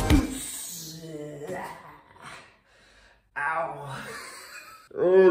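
A young man shouts and grunts with effort close by.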